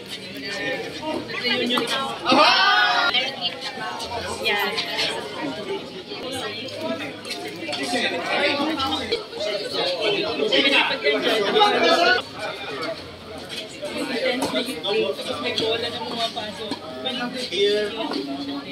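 Men talk nearby, outdoors.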